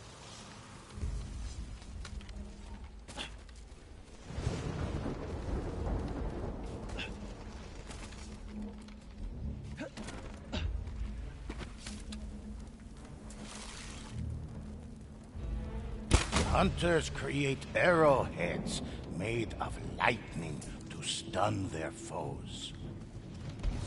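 Footsteps rustle through dense undergrowth.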